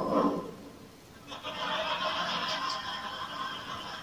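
A toaster pops up toast.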